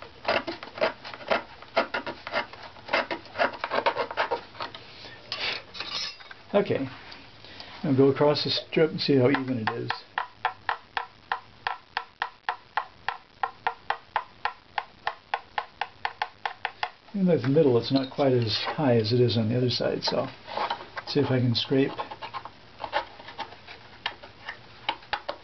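A tool scrapes against wood in quick, even strokes.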